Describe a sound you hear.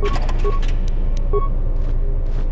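A short electronic beep sounds from a menu.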